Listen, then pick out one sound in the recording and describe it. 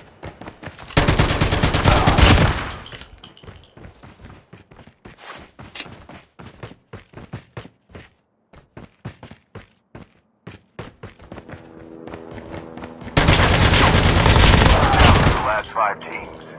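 Rapid machine gun fire rattles in loud bursts.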